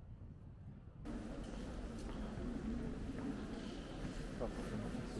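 Footsteps and quiet voices echo in a large hall.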